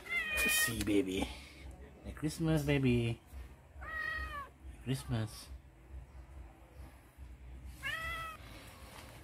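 A cat meows loudly several times, close by.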